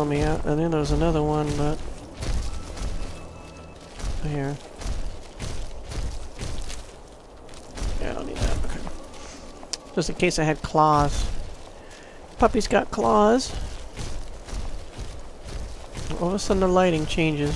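Footsteps crunch over snowy, stony ground.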